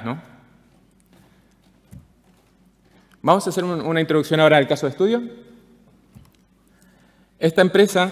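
A young man speaks into a microphone over loudspeakers in a large hall, presenting calmly with pauses.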